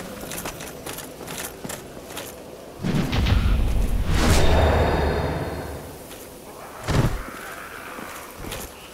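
Swords clash and slash in quick strikes.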